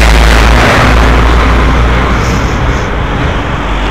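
A heavy truck roars past close by.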